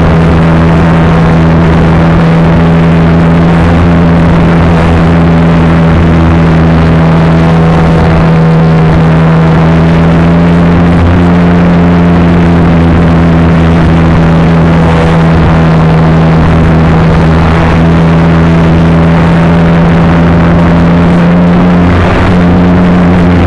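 An electric motor whines steadily close by, with a loud buzzing drone.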